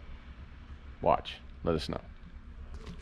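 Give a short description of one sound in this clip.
A middle-aged man speaks briefly and calmly, close by.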